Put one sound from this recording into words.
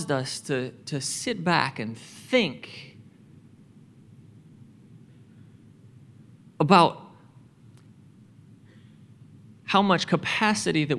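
A man speaks calmly into a microphone, heard through loudspeakers in a large hall, with pauses.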